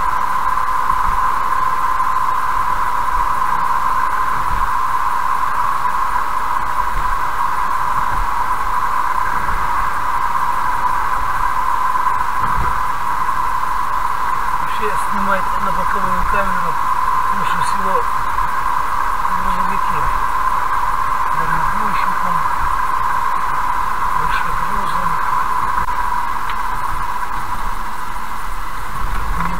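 Tyres hum steadily on a smooth road as a car drives along.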